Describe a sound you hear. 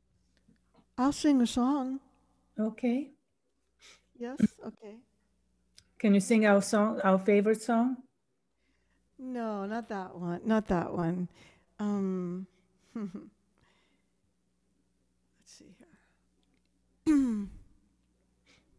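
A young woman sings into a microphone over an online call.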